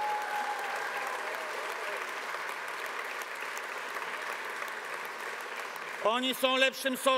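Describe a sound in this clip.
A crowd applauds in a large open space.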